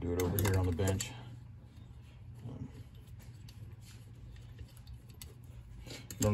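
A small ratchet clicks as a bolt is turned.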